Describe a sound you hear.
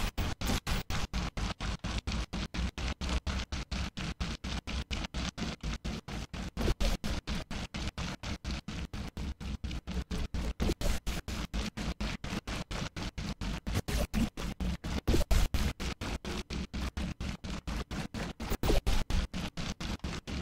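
Thick liquid gushes and splatters in rapid, steady wet bursts.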